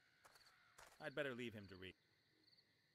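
A man speaks briefly close to a microphone.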